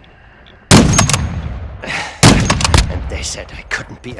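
A scoped rifle fires loud shots that echo away.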